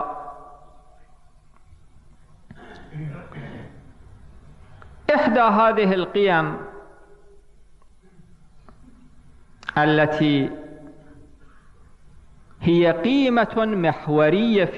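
A man speaks into a microphone in bursts, slowly and with emphasis, pausing between phrases.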